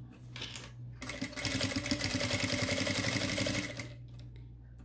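A sewing machine runs with a fast, steady whirr.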